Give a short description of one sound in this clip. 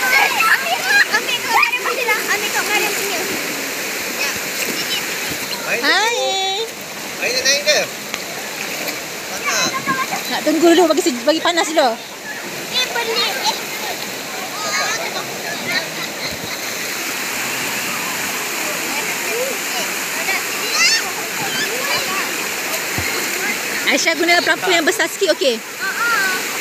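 A shallow stream rushes and splashes steadily.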